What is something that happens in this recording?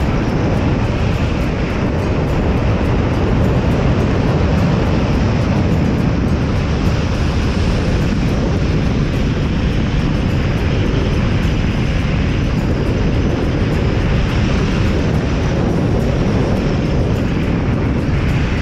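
Strong wind roars loudly and steadily past a microphone in free fall.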